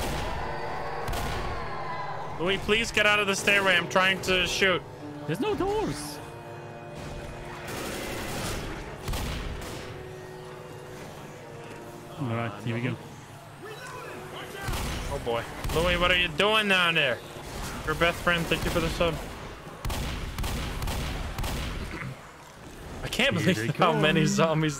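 Shotguns fire loud blasts, again and again.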